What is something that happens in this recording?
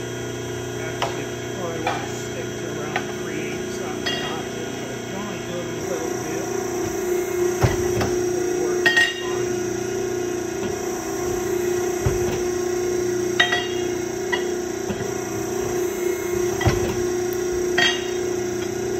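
Metal clanks sharply as a machine punches and shears steel.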